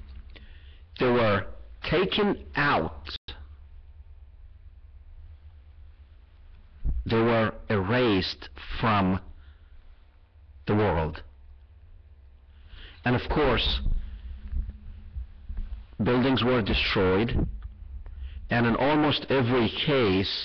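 A middle-aged man speaks with emphasis into a close microphone, pausing between phrases.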